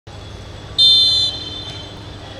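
A referee's whistle blows a short, sharp blast.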